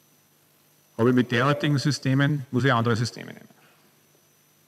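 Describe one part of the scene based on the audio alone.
A middle-aged man speaks calmly in an echoing room.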